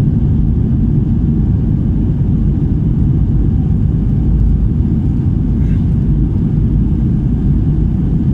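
A jet airliner's engines roar with a steady low rumble inside the cabin.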